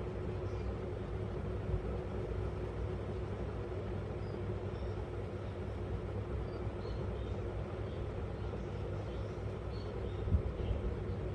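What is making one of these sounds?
A small parrot chirps softly and briefly now and then.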